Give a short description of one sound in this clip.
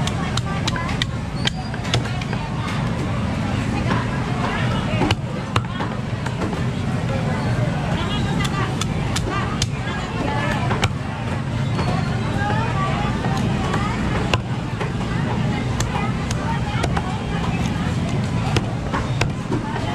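A cleaver chops through fish on a wooden block with sharp thuds.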